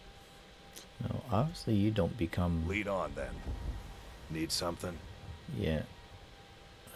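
A man speaks calmly and gruffly, close by.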